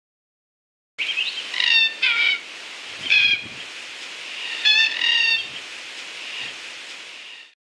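Cockatoos screech.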